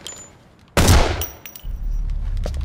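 A gunshot booms loudly and echoes.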